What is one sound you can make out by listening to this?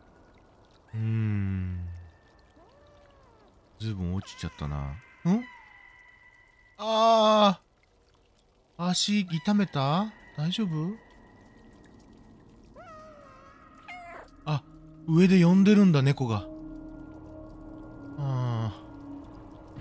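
A small animal cries out loudly several times.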